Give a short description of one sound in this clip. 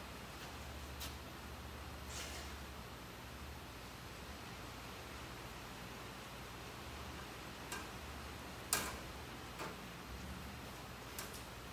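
Small metal parts clink and tap on a metal workbench.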